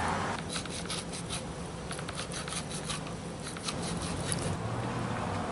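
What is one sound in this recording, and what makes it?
A knife scrapes and cuts on a wooden board.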